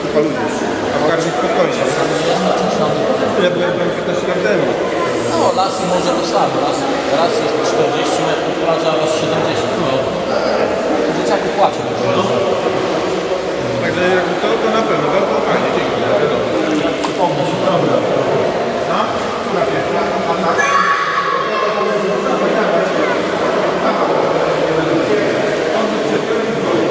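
Water splashes and laps as swimmers kick through an echoing indoor pool.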